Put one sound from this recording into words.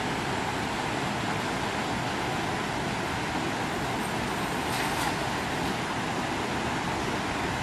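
A stream flows and babbles steadily over rocks.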